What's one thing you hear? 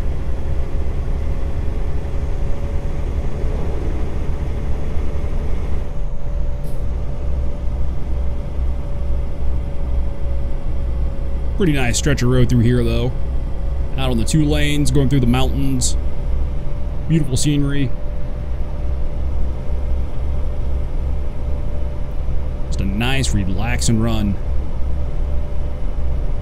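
A truck engine rumbles low and steady.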